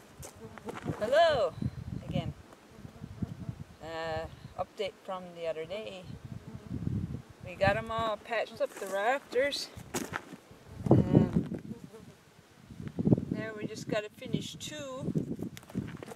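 A woman talks casually close by.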